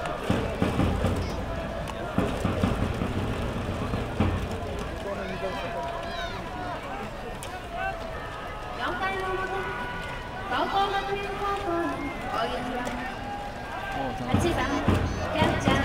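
A brass band plays in the stands.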